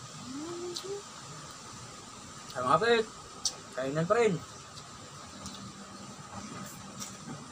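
Two young men chew and smack their lips while eating.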